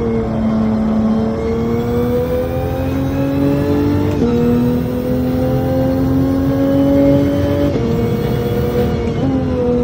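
A racing car engine roars steadily, its pitch climbing and dropping with each gear shift.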